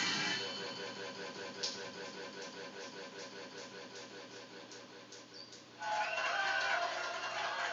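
Rhythmic dance music plays from a television loudspeaker.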